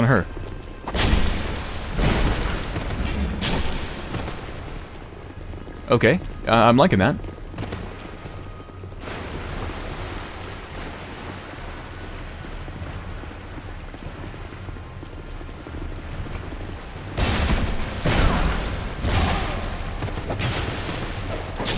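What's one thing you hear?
A weapon swings and strikes with heavy thuds.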